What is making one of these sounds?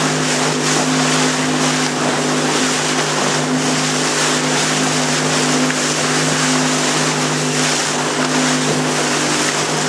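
A small boat's motor drones steadily.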